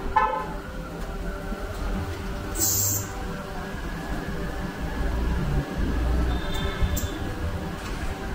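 A wheel balancer spins a tyre with a low whir.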